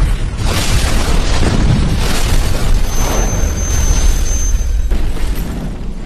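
Flames roar loudly.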